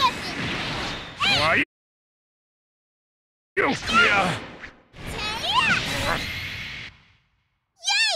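Punches and kicks whoosh and thud in a fight.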